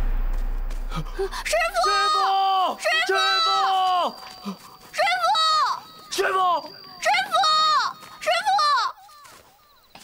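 A boy shouts out loudly, calling into the night.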